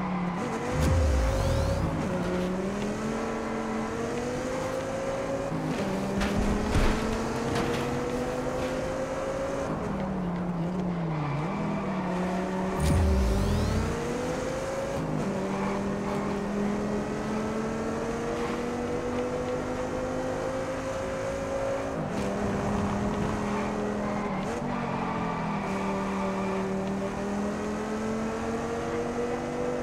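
A car engine revs hard, rising in pitch through each gear and dropping at every gear change.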